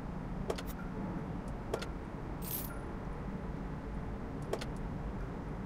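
A menu button clicks sharply a few times.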